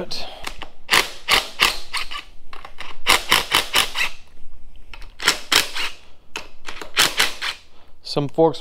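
A cordless impact driver whirs in short, loud bursts.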